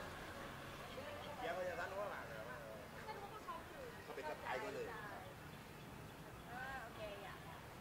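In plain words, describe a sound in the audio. A man talks casually nearby outdoors.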